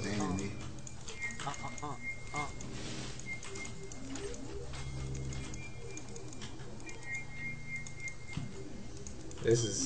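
Sound effects of a video game battle play in the background.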